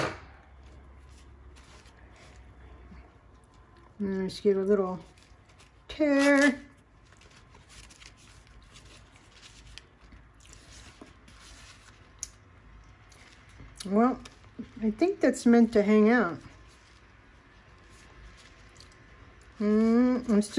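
Paper pages rustle and crinkle as they are handled and turned.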